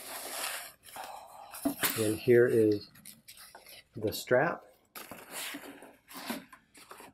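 Fabric rustles as hands handle a bag close by.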